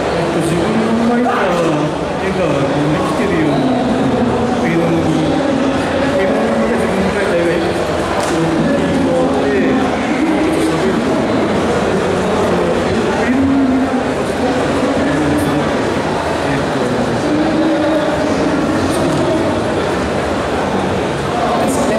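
A young man speaks with animation through a microphone and loudspeakers, outdoors.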